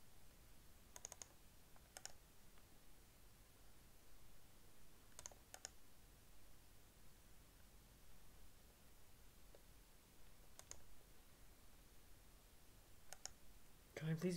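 A computer mouse clicks several times.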